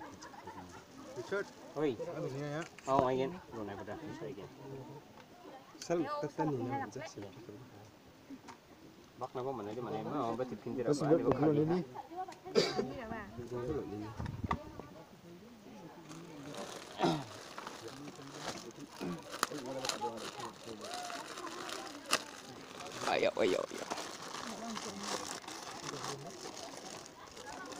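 Young men and women talk casually nearby.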